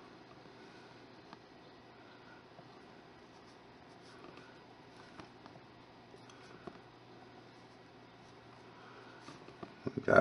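A small wooden tool softly scrapes and presses soft clay.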